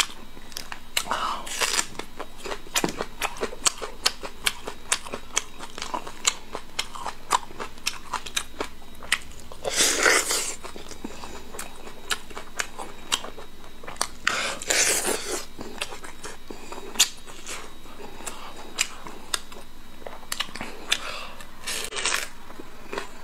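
A man crunches through a crisp green onion stalk.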